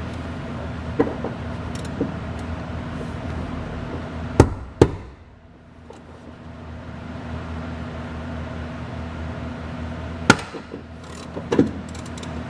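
Metal seatbelt buckles clank and click.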